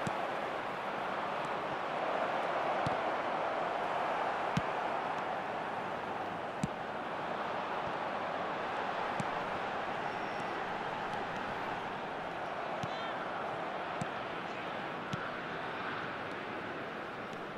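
A stadium crowd roars steadily.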